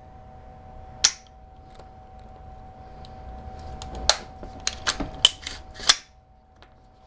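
Metal parts of a rifle click and clack as a man handles them.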